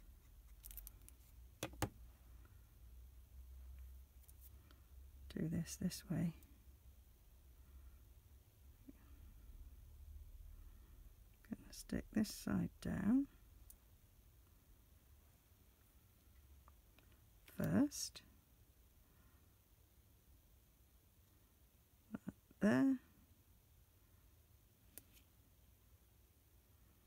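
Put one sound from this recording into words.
Paper rustles and taps softly as fingers handle it.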